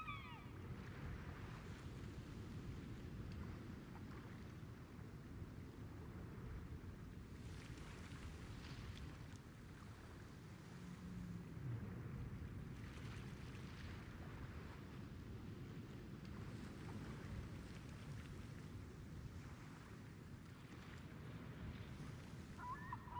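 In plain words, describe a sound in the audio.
Water laps gently against a ship's hull.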